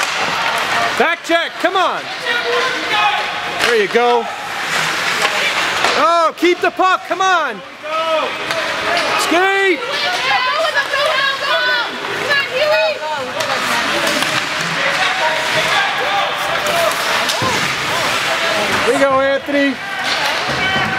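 Spectators shout and cheer in a large echoing arena.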